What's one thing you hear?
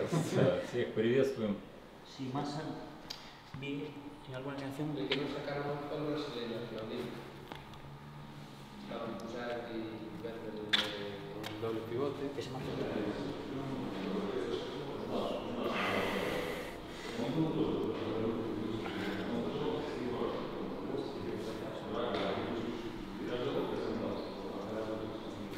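A man speaks calmly and steadily, close to a microphone.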